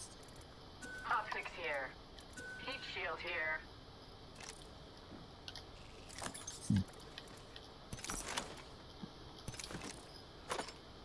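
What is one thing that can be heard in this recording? Short electronic clicks and chimes sound from a video game menu.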